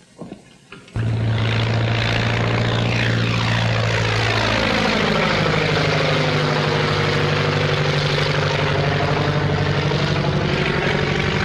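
A propeller plane engine roars loudly and steadily.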